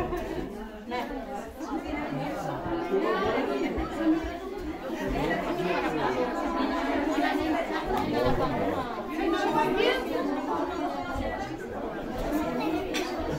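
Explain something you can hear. Several women talk and chatter together close by.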